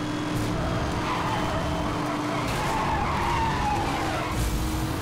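Tyres screech as a car drifts through a bend.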